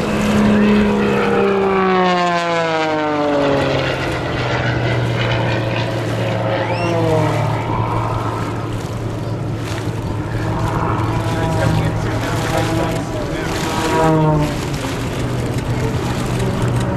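A small propeller plane's engine roars overhead, its pitch dropping as it passes.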